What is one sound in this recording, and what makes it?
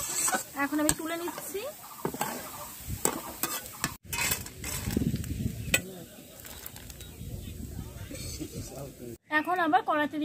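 A metal spatula scrapes and stirs dry lentils in a metal pan.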